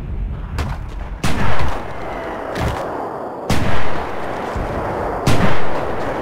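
A hammer strikes sandbags with dull knocks.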